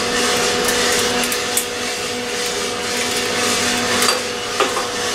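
Coffee beans rattle and crackle inside a roasting drum.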